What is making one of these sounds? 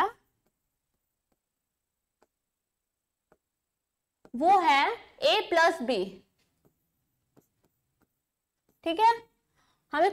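A young woman speaks calmly into a close microphone, in short phrases.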